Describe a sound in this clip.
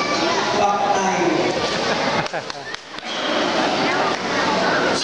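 A man speaks through a microphone and loudspeakers, echoing in a large open hall.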